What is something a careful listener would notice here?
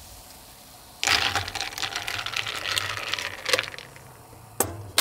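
A spoon stirs ice in a glass, clinking.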